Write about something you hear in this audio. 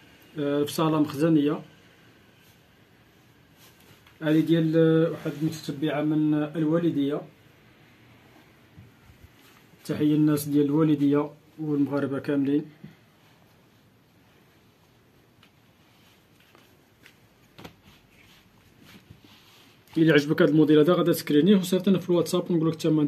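A man talks calmly close by, in short bursts with pauses.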